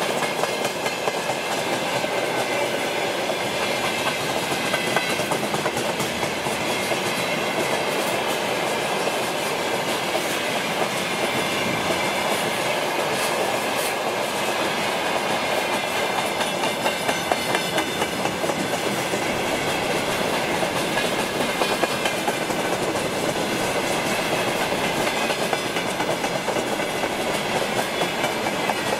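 A long freight train rumbles past close by, its wheels clattering and squealing on the rails.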